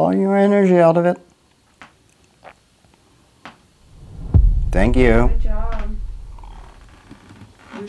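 An elderly woman speaks with animation close by.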